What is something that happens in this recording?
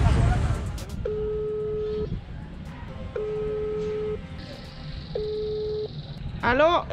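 A device emits steady beeping tones in a repeating pattern.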